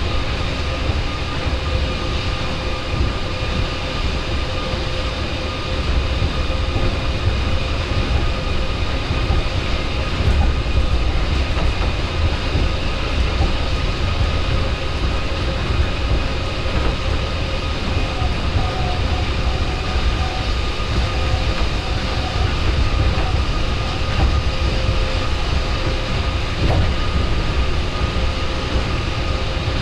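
An electric motor whines with a steady tone.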